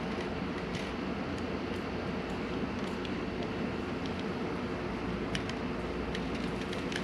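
Plastic parts click and rattle as hands fit them together.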